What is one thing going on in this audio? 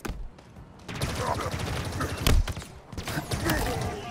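A spike weapon fires in quick sharp bursts.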